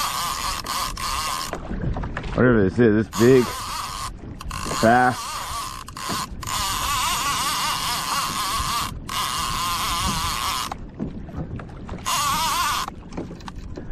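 A fishing reel's drag buzzes loudly as line runs out.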